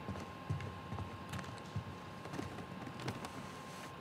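Footsteps tread slowly on a wooden floor.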